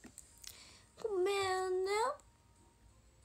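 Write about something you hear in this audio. A young woman hums a long drawn-out note.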